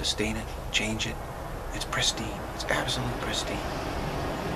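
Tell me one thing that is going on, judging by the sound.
A middle-aged man speaks calmly, close to the microphone.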